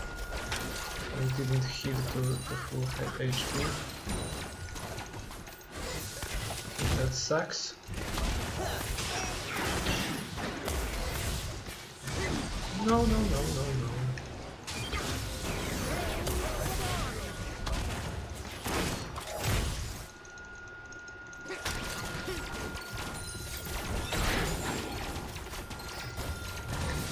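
Game sound effects of spells and hits crackle and whoosh.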